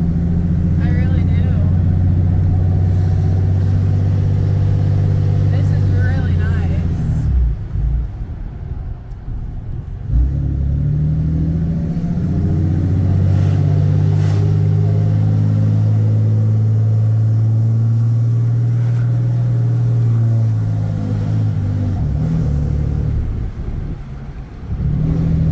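A vehicle engine hums from inside the cabin, rising and falling in pitch as it speeds up and slows.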